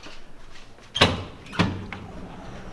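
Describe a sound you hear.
A door latch clunks and a door swings open.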